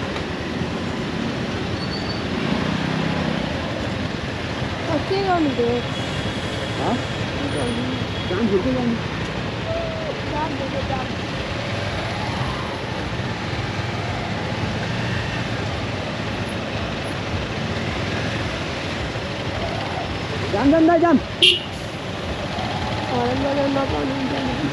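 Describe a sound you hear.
A motorcycle engine idles and putters up close.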